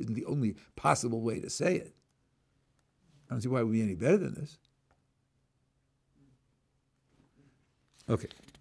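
An elderly man speaks calmly and closely into a microphone, in short phrases with pauses.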